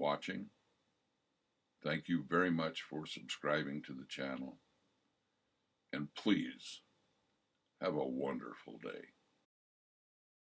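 An elderly man speaks calmly into a microphone, heard close up.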